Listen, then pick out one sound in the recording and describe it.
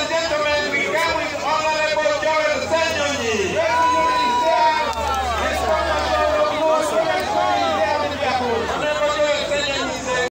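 A large crowd cheers and sings loudly outdoors.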